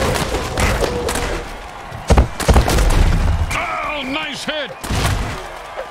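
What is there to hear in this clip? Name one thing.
Heavy bodies slam together in a loud tackle.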